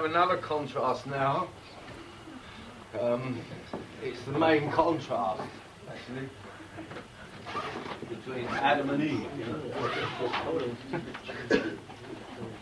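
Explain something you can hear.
A middle-aged man speaks with animation nearby.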